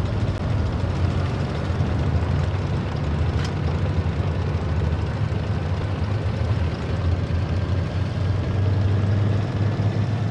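A tank's tracks clatter over the ground.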